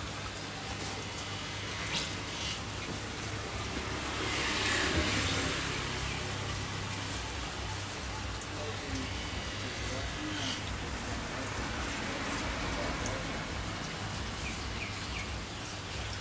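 A knife scrapes scales off a fish.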